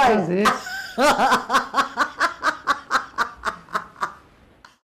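An elderly man laughs heartily in short bursts.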